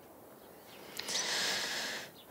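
A young woman lets out a soft, breathy sigh.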